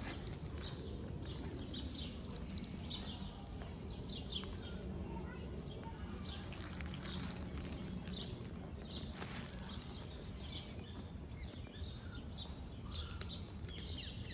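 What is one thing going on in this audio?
A cat crunches dry kibble.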